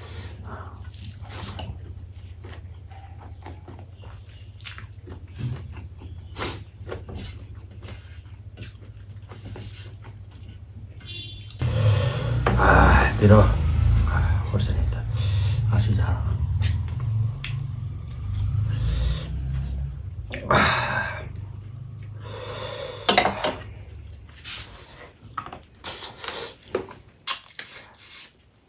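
A man chews and smacks his lips close up.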